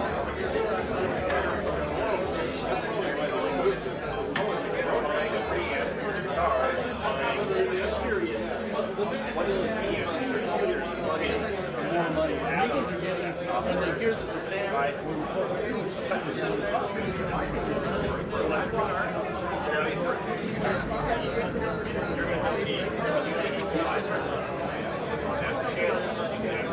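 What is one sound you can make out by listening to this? A crowd of men and women chatter all around in a large hall.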